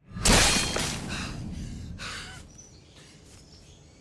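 Leafy branches rustle as someone pushes through bushes.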